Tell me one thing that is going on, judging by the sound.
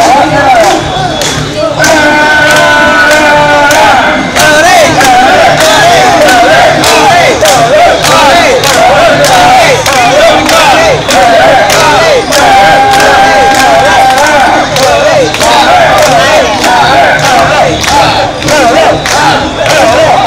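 A crowd of men and women chants loudly in rhythm close by, outdoors.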